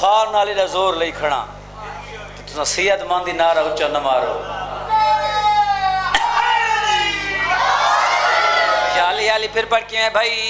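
A young man chants loudly into a microphone, echoing through loudspeakers.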